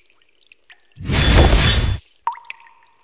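A loud burst of noise from a video game sounds as surprise marks pop up.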